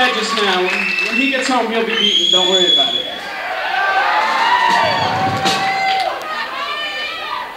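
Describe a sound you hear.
A man sings into a microphone over a loudspeaker in a large hall.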